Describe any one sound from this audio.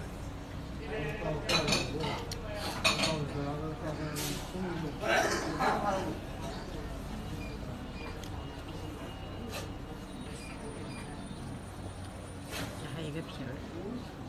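A middle-aged man talks close by with animation.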